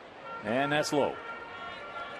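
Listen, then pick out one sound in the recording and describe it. A man shouts a call loudly across an open ballpark.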